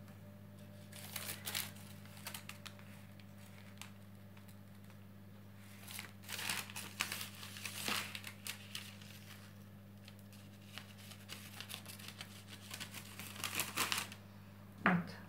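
A blade scrapes and scores the crust of a loaf of dough.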